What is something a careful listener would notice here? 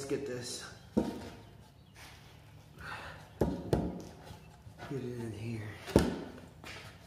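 Wooden beams knock together as they are fitted.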